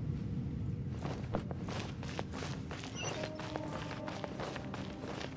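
Footsteps run quickly over wooden boards.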